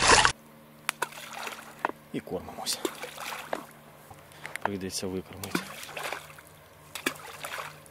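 Bait splashes into calm water.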